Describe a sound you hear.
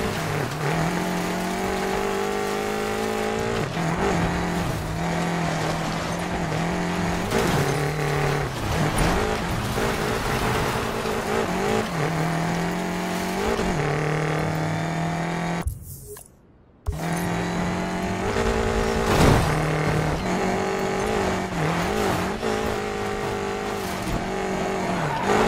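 Tyres skid and slide on dirt.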